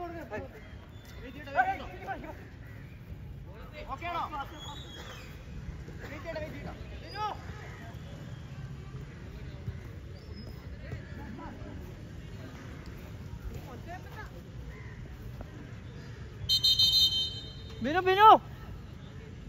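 Young male players shout across an open field.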